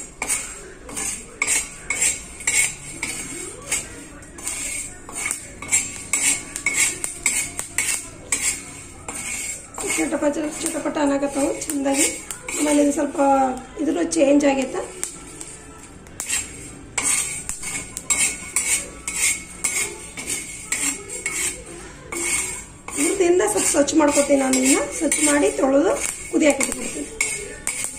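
A metal spatula scrapes and stirs dry lentils in a hot pan.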